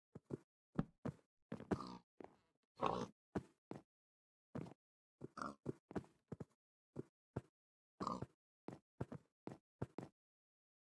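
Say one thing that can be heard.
Pigs grunt and oink in short bursts.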